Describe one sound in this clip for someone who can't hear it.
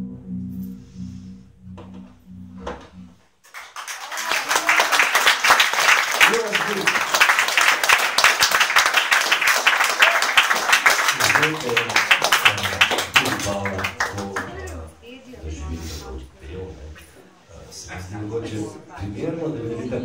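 A small band plays live music.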